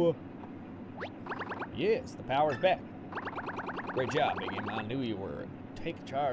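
Quick electronic blips chatter in bursts.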